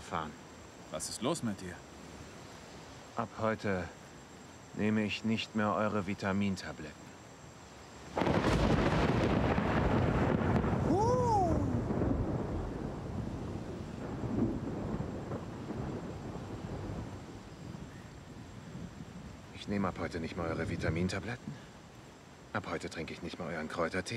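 A man speaks in a low, calm voice nearby.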